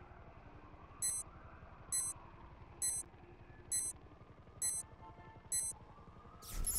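Short electronic beeps tick off a countdown, about once a second.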